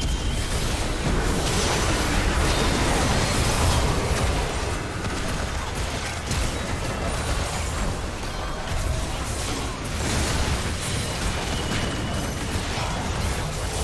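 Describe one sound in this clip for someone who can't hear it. Magic blasts, hits and explosions from a video game battle crackle and boom continuously.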